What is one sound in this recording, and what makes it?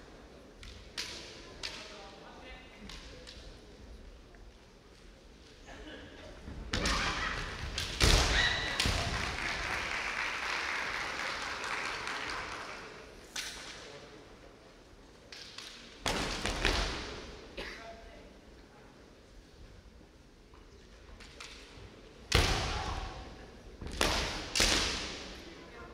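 Bamboo swords clack sharply against each other and against armour, echoing in a large hall.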